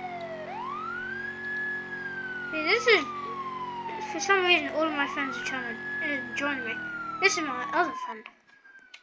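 A police car siren wails up and down.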